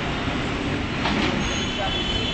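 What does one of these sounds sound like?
A cat cries out sharply close by.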